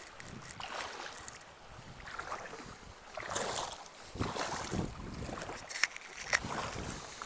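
Bare feet splash and slosh through shallow flowing water.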